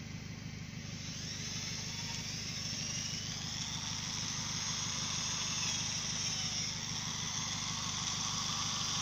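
A cordless drill whirs, driving screws into wood.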